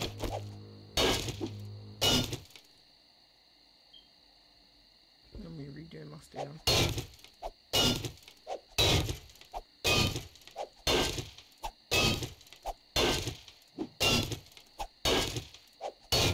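A pickaxe strikes the ground in steady, repeated thuds.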